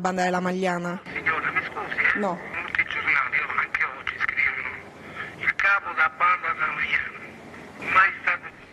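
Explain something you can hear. A woman speaks close to a microphone.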